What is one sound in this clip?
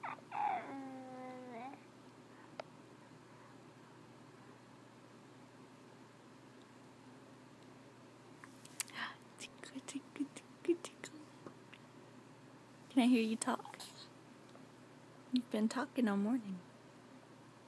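A baby coos and babbles close by.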